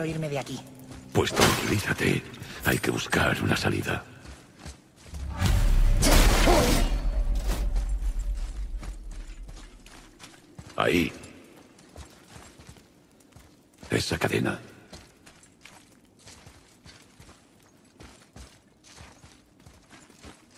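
Heavy footsteps tread on stone and gravel.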